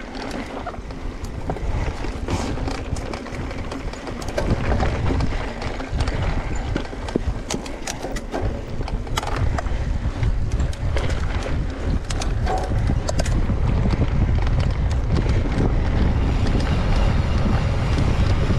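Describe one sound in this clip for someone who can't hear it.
Mountain bike tyres roll and rattle over a rocky dirt trail.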